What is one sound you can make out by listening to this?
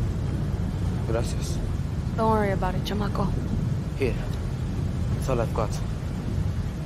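A teenage boy speaks softly.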